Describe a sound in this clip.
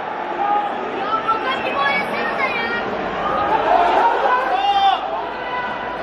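Football players shout to each other across the pitch.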